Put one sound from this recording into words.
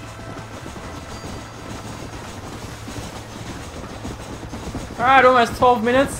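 A steam train rumbles along the tracks.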